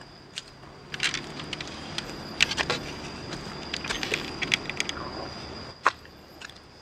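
A wooden gate rattles as it opens.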